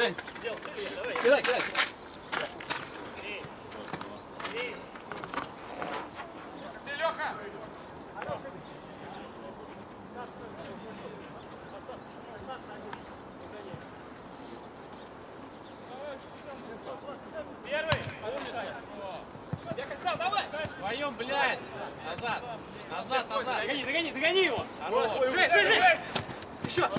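Men shout and call to each other outdoors.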